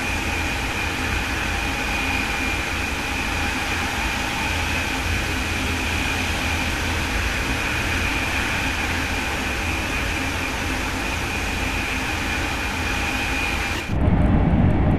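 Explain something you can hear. A high-speed electric train rushes along the track at speed.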